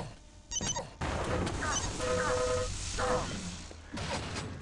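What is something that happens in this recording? An electric beam weapon fires with a loud crackling buzz.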